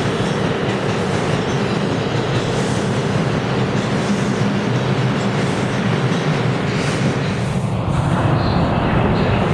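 A subway train rushes past with a loud rumble, echoing in a tunnel.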